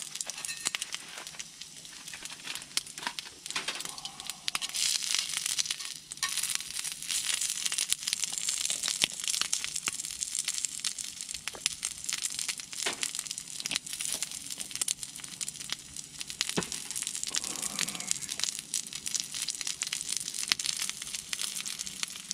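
Sausages sizzle on a hot grill.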